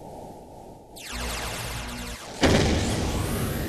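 Game laser blasts zap and crackle loudly.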